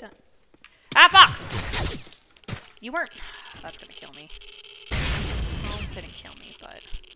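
A grenade explodes with a loud blast.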